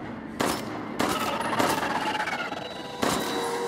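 A creature growls and shrieks.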